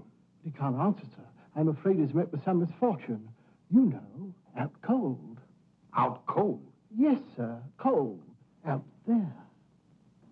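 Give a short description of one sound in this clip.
An elderly man speaks with animation.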